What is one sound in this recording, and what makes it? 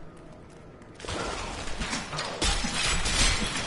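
Loud crashing clashes and blasts of a fight erupt.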